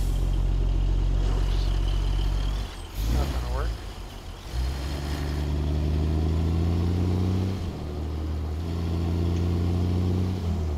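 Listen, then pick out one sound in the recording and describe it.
A truck's diesel engine rumbles deeply and shifts through gears.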